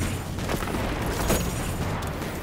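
An explosion bursts loudly.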